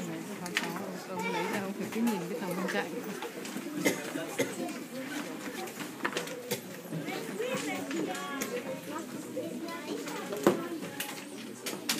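Many adults and children chatter together in a crowded room.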